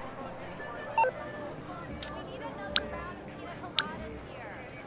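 Short electronic clicks from a phone menu sound several times.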